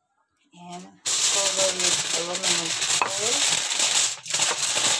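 Aluminium foil crinkles and rustles.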